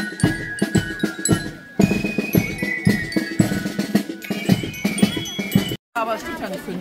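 Drums beat a steady marching rhythm.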